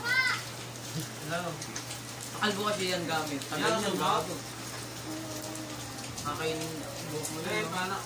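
Scissors snip at hair.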